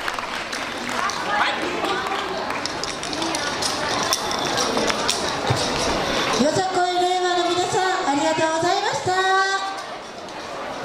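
A group of young dancers shout together in chorus.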